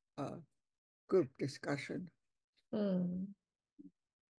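An elderly woman speaks calmly over an online call.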